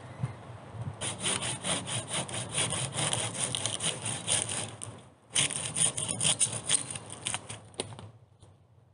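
A hand saw rasps back and forth through a log.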